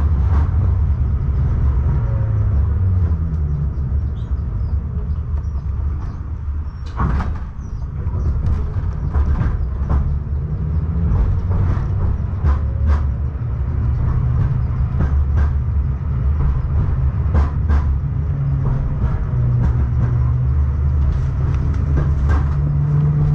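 A moving vehicle knocks and rattles now and then.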